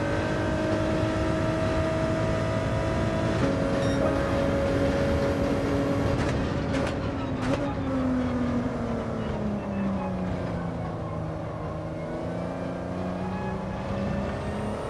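A racing car engine roars loudly, its pitch dropping as it slows and then rising again.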